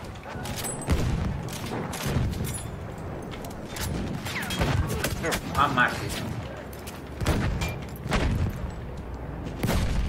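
Rifle shots crack loudly, with short gaps between them.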